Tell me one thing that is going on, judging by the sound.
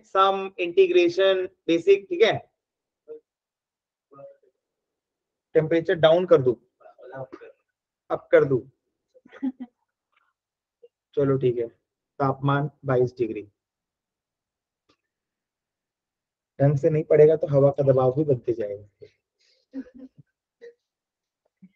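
A young man explains with animation over an online call, pausing between phrases.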